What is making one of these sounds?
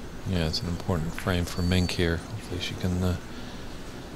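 A cue tip strikes a snooker ball with a soft click.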